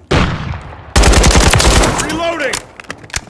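A rifle fires a rapid burst of shots close by.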